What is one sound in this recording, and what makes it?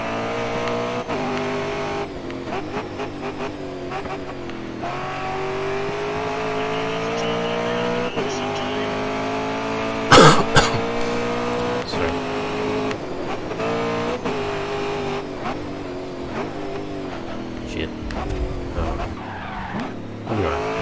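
A race car engine roars loudly, its pitch rising and dropping as it shifts gears.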